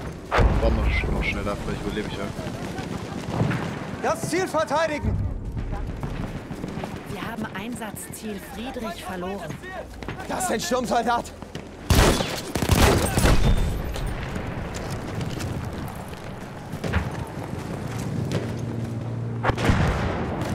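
A rifle fires sharply nearby.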